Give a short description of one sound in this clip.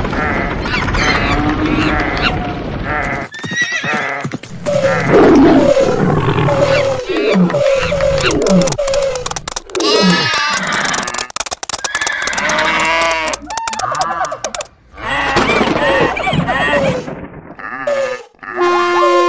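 Various animals call, bray and cry one after another.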